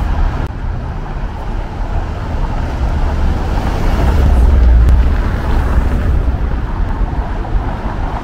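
A car engine hums as the car rolls slowly over cobblestones toward the listener.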